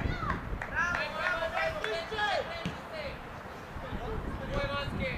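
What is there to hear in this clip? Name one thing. Young players shout to each other across an open outdoor field.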